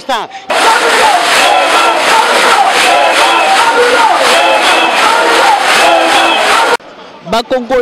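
A crowd sings and chants loudly outdoors.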